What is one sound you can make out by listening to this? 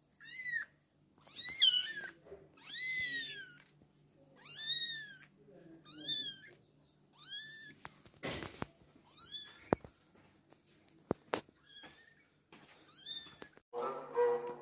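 A tiny kitten mews loudly and repeatedly, close by.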